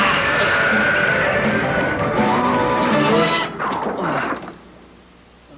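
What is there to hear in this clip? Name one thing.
An energy blast roars loudly and then cuts off.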